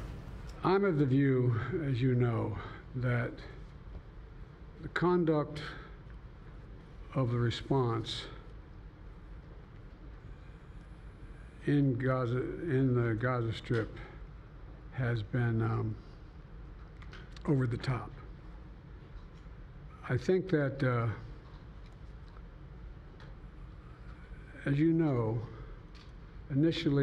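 An elderly man speaks slowly and haltingly into a microphone, with long pauses.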